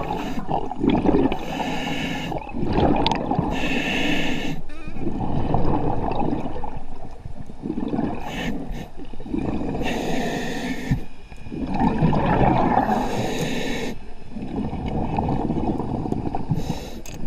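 Water rushes and gurgles close by in bursts.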